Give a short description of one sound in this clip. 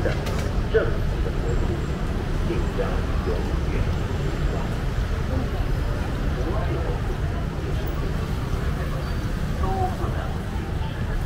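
A crowd murmurs with distant chatter outdoors.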